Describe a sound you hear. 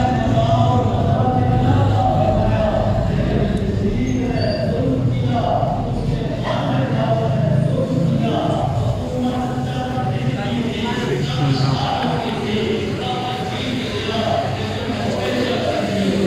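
A crowd of men murmurs and talks in a large echoing hall.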